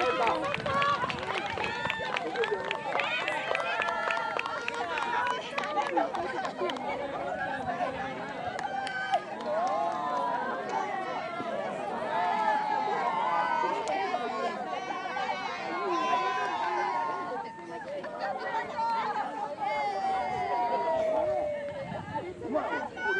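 Many young boys chatter and call out outdoors.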